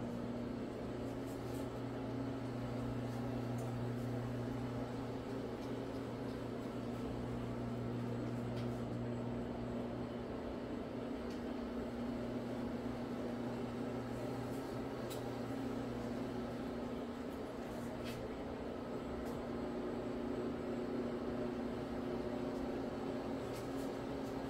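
A floor buffing machine hums steadily as it scrubs carpet.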